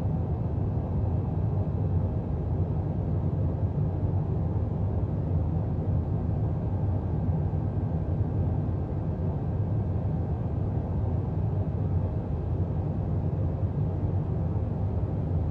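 A jet engine roars steadily with a deep, low rumble, heard from inside an airliner cabin.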